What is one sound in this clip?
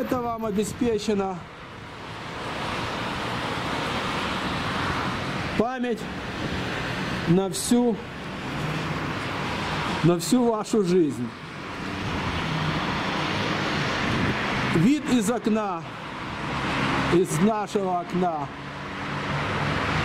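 Tyres hiss on a wet road as cars pass by in the distance.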